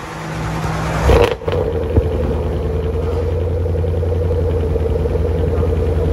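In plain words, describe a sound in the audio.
A car engine starts with a roar and settles into a deep, rumbling idle.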